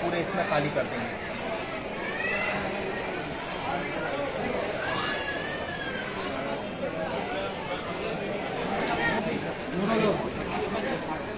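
A crowd of men talks and murmurs nearby.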